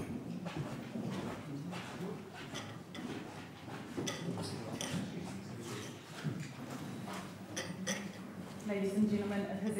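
An audience murmurs quietly in a large echoing hall.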